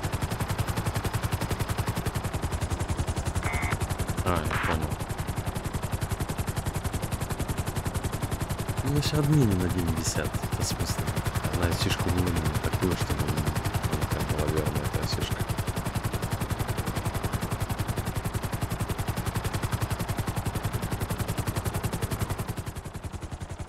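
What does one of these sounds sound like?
A helicopter's rotor thumps steadily and loudly.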